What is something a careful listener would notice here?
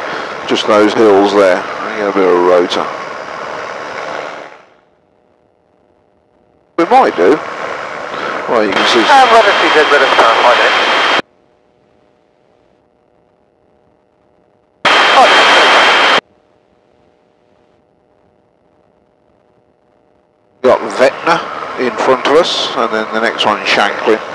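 A man speaks over a radio intercom in short bursts.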